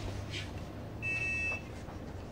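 A card reader beeps with a steady tone.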